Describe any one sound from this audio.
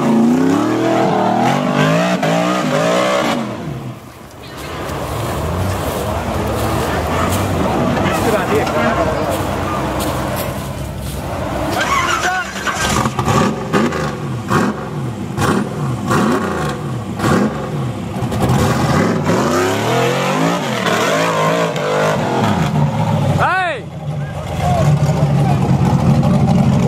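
An off-road vehicle's engine roars and revs hard, rising and falling repeatedly.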